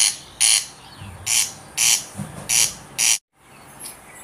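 A bird calls with repeated harsh, rasping bursts.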